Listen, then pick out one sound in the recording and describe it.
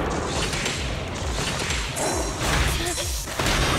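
A sword slashes and clangs against metal in quick strikes.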